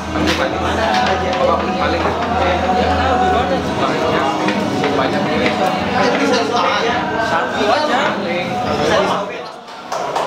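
A man speaks firmly to a group.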